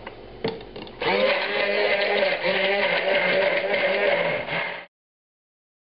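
A hand blender whirs loudly, blending liquid.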